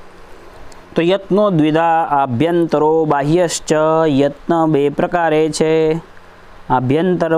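A young man chants closely into a microphone, in a steady, drawn-out melodic voice.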